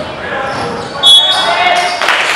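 A referee blows a short, shrill whistle.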